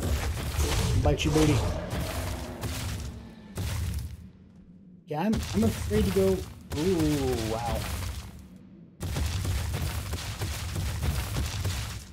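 A large beast's heavy footsteps thud steadily.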